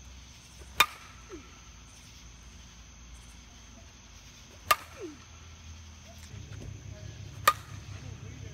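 A metal bat cracks sharply against a softball, ringing briefly.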